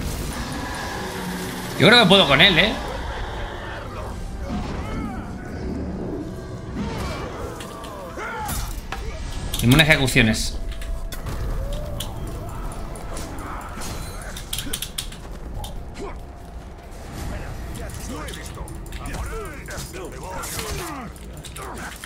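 Swords clash and clang in a game fight.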